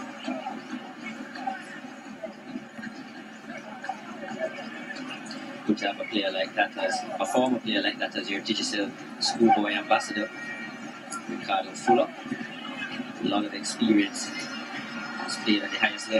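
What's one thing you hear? A large crowd murmurs and cheers in a stadium.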